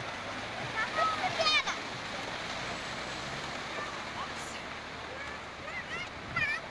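Waves wash onto a rocky shore nearby.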